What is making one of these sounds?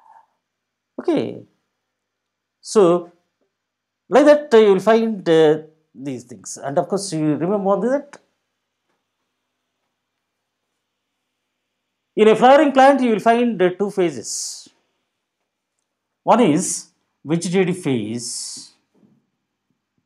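A middle-aged man speaks calmly into a close microphone, explaining.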